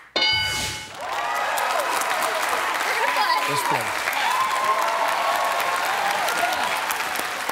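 A studio audience claps and cheers loudly.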